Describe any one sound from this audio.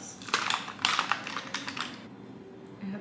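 Plastic packaging crinkles in someone's hands.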